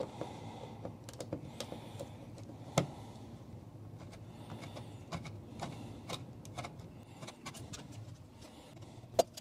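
A screwdriver clicks and scrapes against a plastic wall plate.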